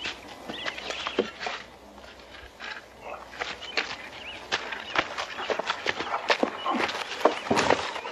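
A shovel digs into the earth.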